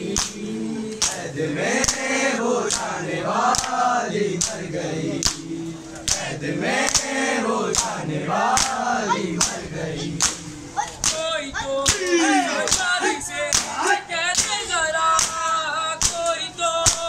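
A group of young men chants loudly in unison.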